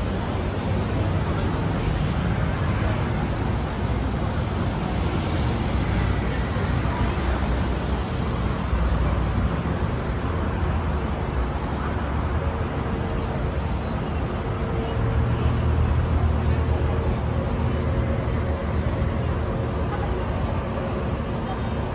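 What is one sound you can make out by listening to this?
People chatter in the distance outdoors.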